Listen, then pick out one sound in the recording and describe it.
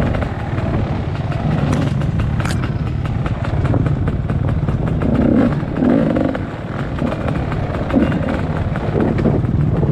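Tyres crunch and rattle over loose stones.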